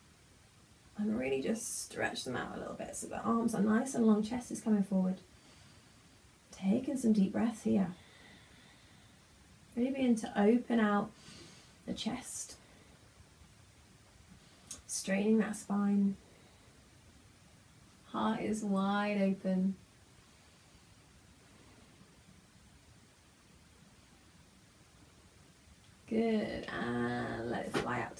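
A young woman speaks calmly and slowly nearby, with long pauses.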